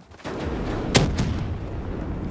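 A loud explosion bursts nearby.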